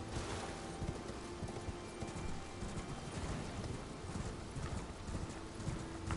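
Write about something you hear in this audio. Horse hooves thud rhythmically on soft ground at a gallop.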